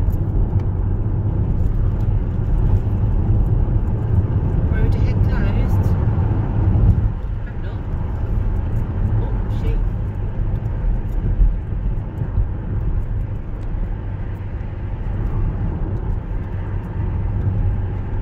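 Tyres rumble steadily on tarmac.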